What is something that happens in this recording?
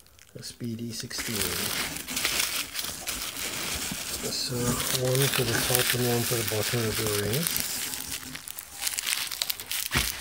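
Plastic bubble wrap crinkles and rustles as it is handled.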